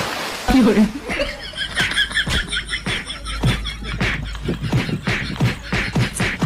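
Bodies splash and slap in muddy water.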